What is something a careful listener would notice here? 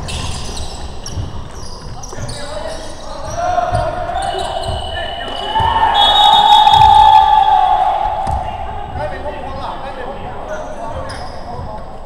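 Basketball sneakers squeak on a hardwood court in a large echoing hall.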